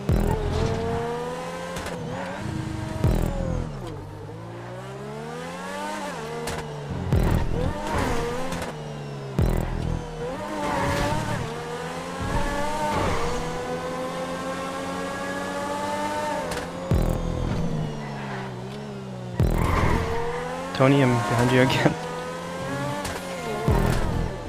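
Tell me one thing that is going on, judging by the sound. A racing car engine revs high, rising and falling in pitch.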